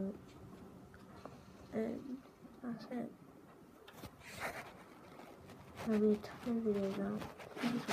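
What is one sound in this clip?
A young boy talks casually and close up, in short bursts.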